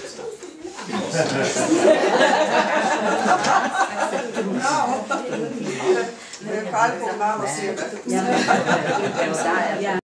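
Several men and women chatter and laugh together.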